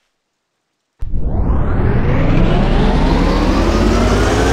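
A truck engine starts and roars loudly as it drives.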